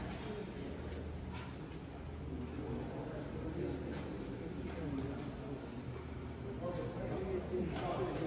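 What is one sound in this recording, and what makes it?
Several men and women chatter nearby.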